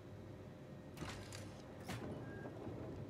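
A metal shutter slides shut with a mechanical clunk.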